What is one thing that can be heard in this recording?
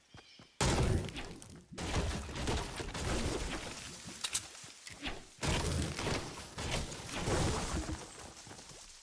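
A pickaxe chops rapidly into wood.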